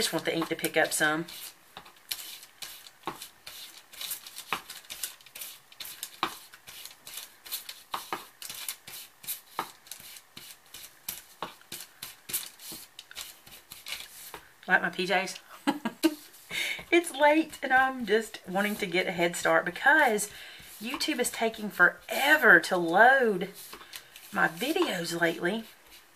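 A sponge dabs on paper with quick, soft taps.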